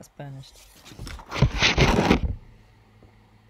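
A sheet of paper slides across a wooden surface.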